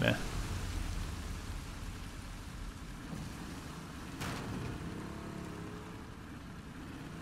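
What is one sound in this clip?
Water laps and splashes against a small boat's hull.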